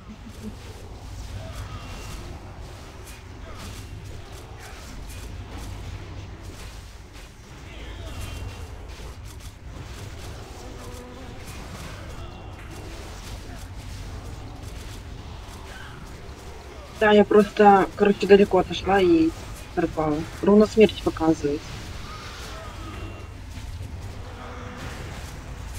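Magic spells crackle and whoosh during a fantasy battle.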